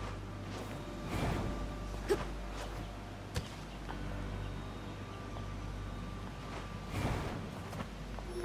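A heavy sword swings through the air with sharp whooshes.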